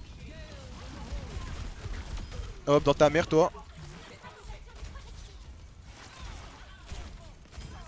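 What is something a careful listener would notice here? Gunfire rattles from a video game.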